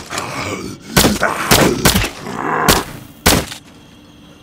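Heavy blows strike a body with wet thuds.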